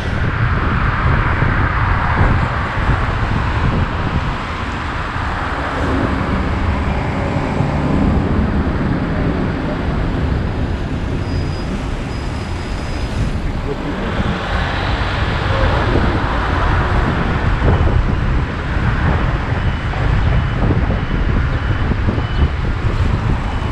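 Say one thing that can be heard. Wind rushes and buffets loudly past a moving vehicle.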